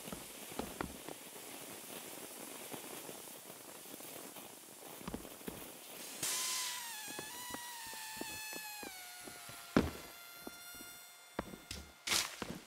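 Footsteps tread over dirt and grass.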